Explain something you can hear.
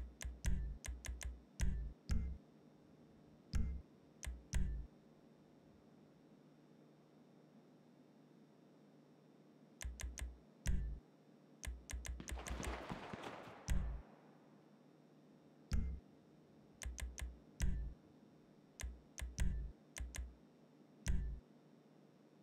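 Short soft game menu clicks and thumps sound in quick bursts.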